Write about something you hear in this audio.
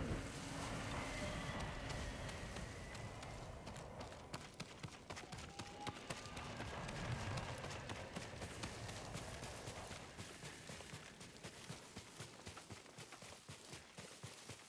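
Quick footsteps run over stone and through grass.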